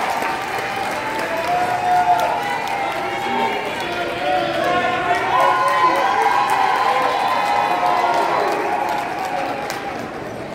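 A children's choir sings in a large hall.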